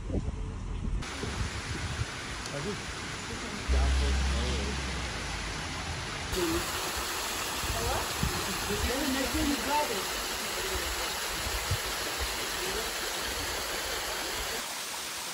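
A waterfall splashes and rushes steadily over rocks.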